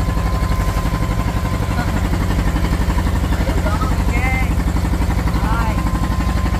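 A boat engine chugs loudly and steadily close by.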